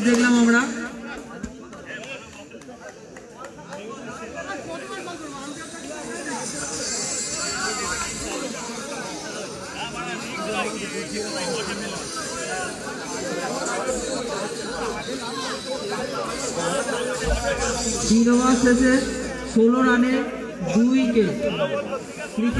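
Several young men talk and call out to one another nearby.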